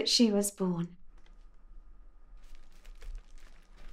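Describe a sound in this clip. An elderly man turns the pages of a magazine.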